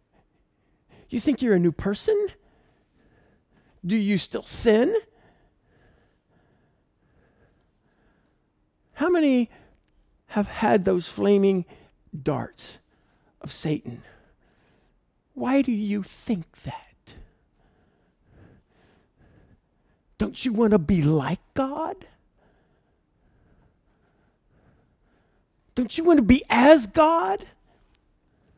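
A middle-aged man speaks with animation through a headset microphone, in short bursts with pauses.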